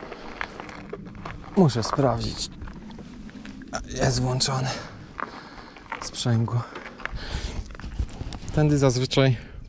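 Bicycle tyres crunch over a gravel path.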